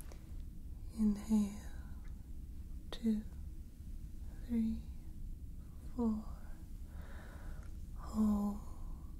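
A young woman speaks softly and slowly, close to a microphone.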